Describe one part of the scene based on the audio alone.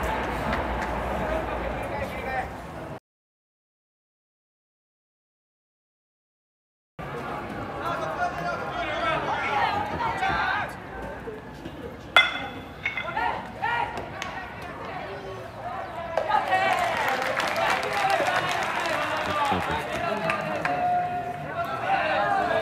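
A crowd of spectators cheers and chants in the distance.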